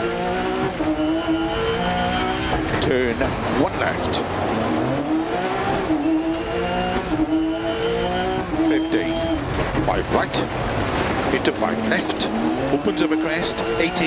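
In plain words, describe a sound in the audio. A rally car engine revs hard, rising and falling as the gears shift.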